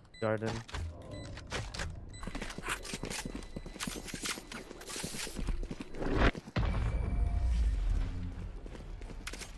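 A young man talks with animation through a microphone.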